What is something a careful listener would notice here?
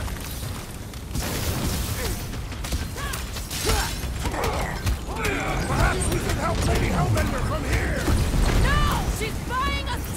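Energy blasts boom and whoosh in a video game fight.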